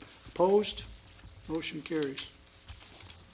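A man speaks briefly into a microphone in a room with a slight echo.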